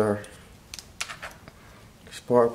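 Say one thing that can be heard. A rubber cable rustles and clicks as a hand pulls on it.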